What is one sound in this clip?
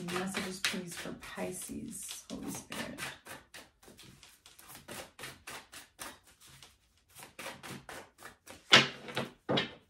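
Cards riffle and shuffle in a young woman's hands.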